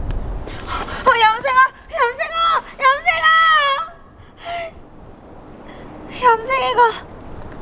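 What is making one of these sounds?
A young woman cries and wails close by.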